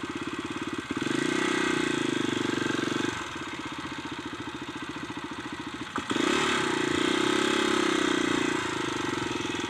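A motorbike engine revs up loudly.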